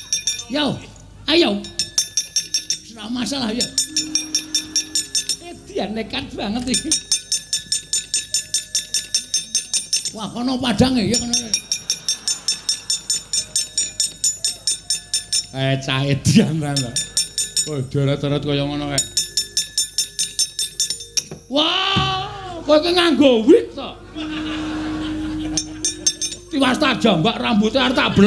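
A man voices characters dramatically, changing his voice.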